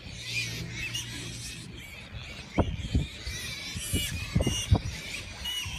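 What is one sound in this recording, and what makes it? Piglets squeal softly.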